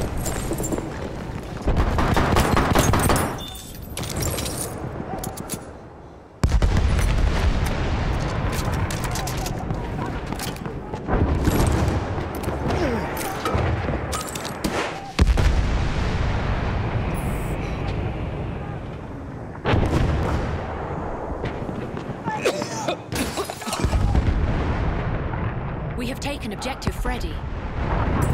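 Gunfire and explosions boom and crackle in loud bursts nearby.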